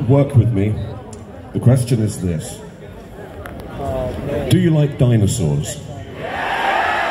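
A man speaks through loudspeakers.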